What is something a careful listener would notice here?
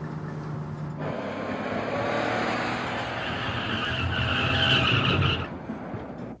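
A car engine roars as a car speeds past.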